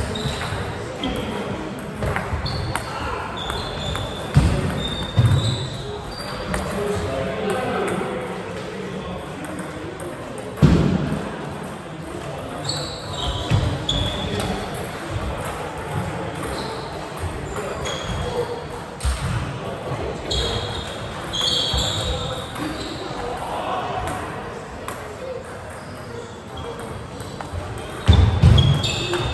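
A ping-pong ball clicks back and forth between paddles and a table.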